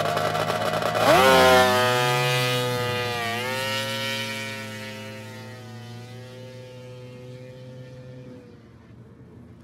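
A snowmobile engine roars up sharply, then slowly fades into the distance.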